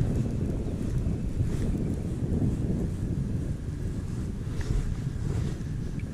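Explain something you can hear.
A fishing reel whirs and clicks as it is wound in.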